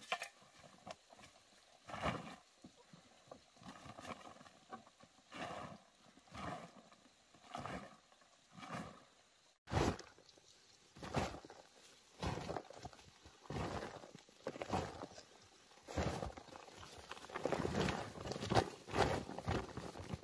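Dry soil scrapes and crumbles as hands scoop it up.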